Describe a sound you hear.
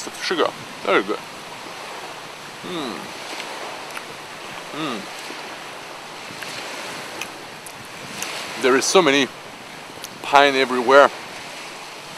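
A man speaks close up, in short animated bursts with pauses.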